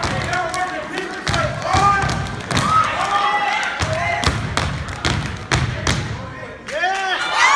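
Boots stomp in a sharp rhythm on a wooden stage.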